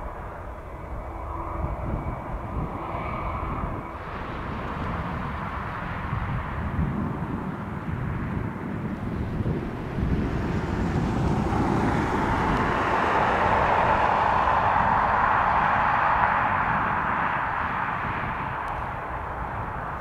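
A jet airliner's engines roar as it approaches, growing steadily louder.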